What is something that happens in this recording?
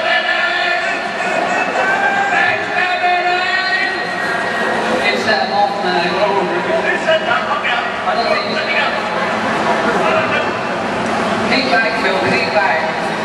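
A harsh robotic voice speaks through a loudspeaker.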